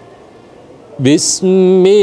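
A man begins chanting a recitation loudly in a melodic voice through a microphone.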